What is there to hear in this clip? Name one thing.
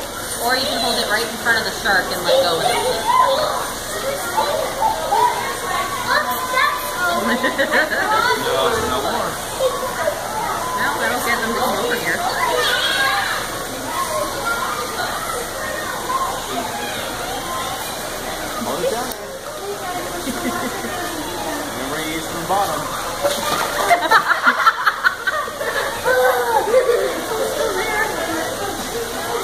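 Several children and adults chatter nearby in an echoing room.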